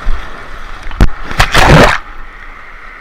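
Water splashes as a riding tube shoots out of a slide.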